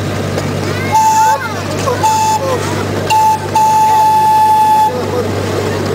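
A miniature train's whistle blows in short blasts.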